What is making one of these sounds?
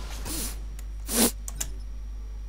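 A game menu opens with a short electronic whoosh.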